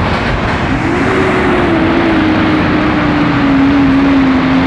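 A lorry engine drones as it pulls away nearby, its pitch slowly falling.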